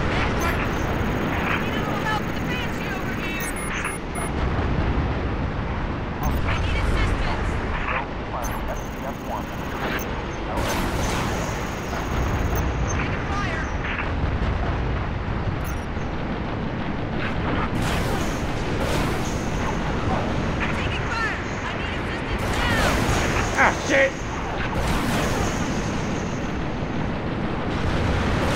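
Spacecraft engines roar steadily.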